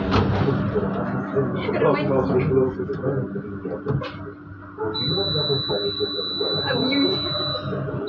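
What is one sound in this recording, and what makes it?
Another tram rolls up close alongside on the next track.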